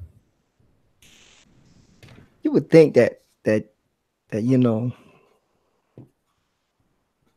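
A pencil scratches and rubs across paper.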